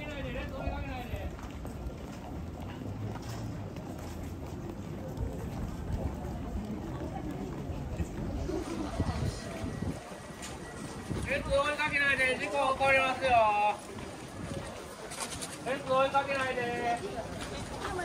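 A crowd chatters.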